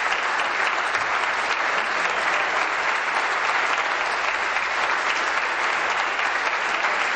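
A crowd applauds steadily in a large echoing hall.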